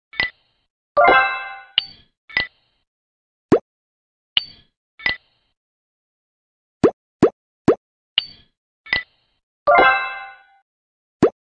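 A sparkling chime rings out as dice merge.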